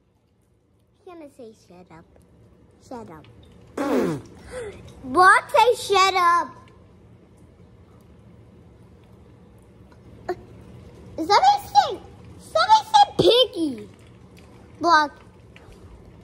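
A young girl talks animatedly close to the microphone.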